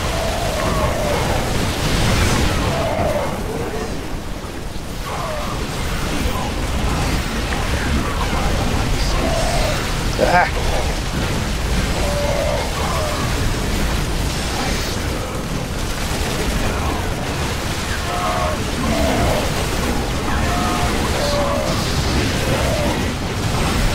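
Laser weapons fire rapidly in a battle.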